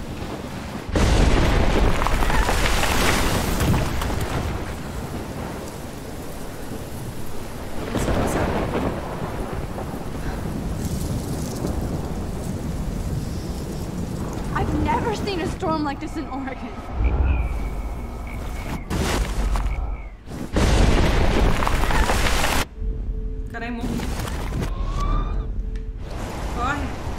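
A storm wind roars through trees.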